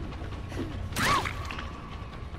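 A heavy hammer strikes with a sharp thud.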